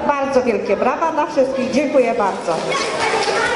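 A woman speaks with animation into a microphone, heard through a loudspeaker.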